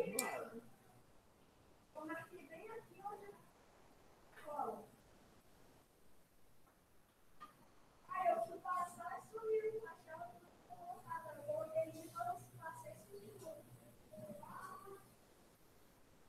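A woman speaks calmly through an online call microphone, with pauses.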